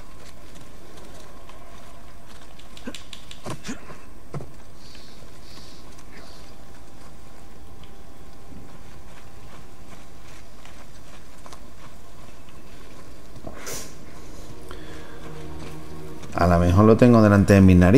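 Footsteps crunch softly on dirt and straw.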